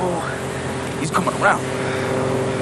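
A young man shouts urgently nearby.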